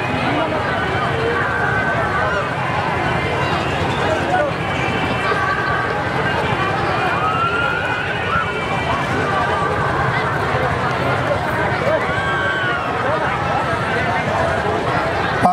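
A man speaks with animation through a microphone and loudspeakers.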